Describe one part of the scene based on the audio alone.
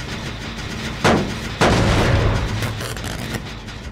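A metal machine clanks and grinds as it is struck.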